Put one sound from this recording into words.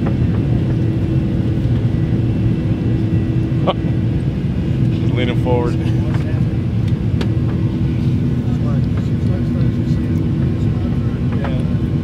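A steady low engine drone fills an airplane cabin.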